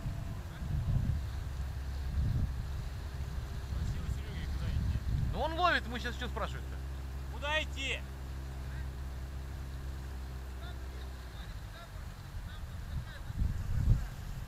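River water rushes through rapids around an inflatable boat.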